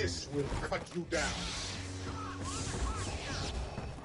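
A lightsaber hums and swings.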